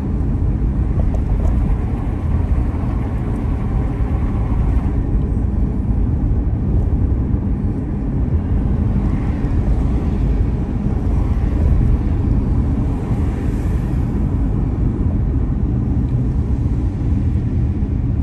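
Tyres roll steadily on smooth tarmac.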